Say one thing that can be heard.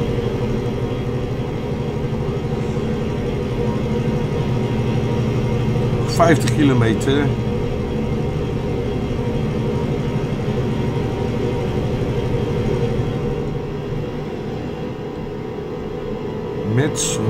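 A truck engine hums steadily throughout.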